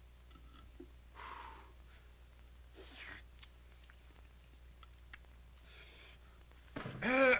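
A young man slurps noodles noisily.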